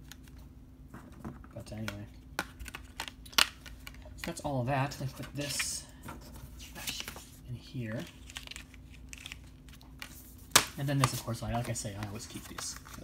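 Plastic discs and a case click and rattle as hands handle them.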